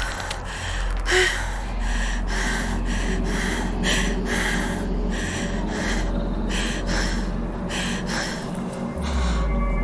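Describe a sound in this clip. A young woman breathes rapidly and heavily over an online call.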